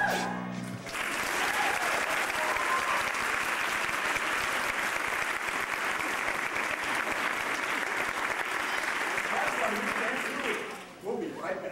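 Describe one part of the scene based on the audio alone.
An audience applauds and cheers in a large hall.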